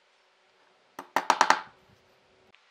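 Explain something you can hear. A hammer taps a nail into wood.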